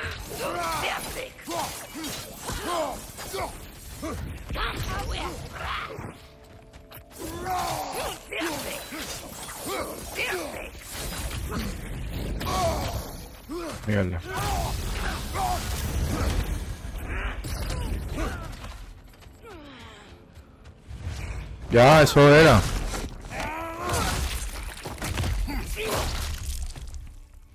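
Axe blows clash and thud in a fight.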